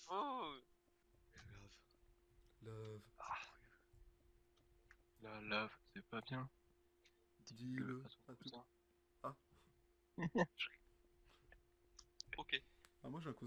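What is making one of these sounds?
A pickaxe chips at stone blocks with short knocks.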